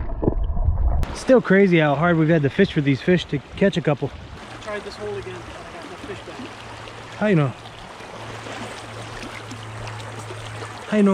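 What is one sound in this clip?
A shallow stream burbles over rocks.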